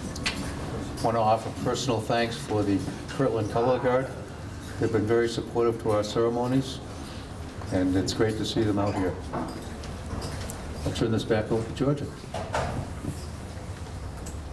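A middle-aged man speaks calmly into a microphone over a loudspeaker in a room with some echo.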